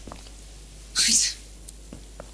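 A woman laughs briefly.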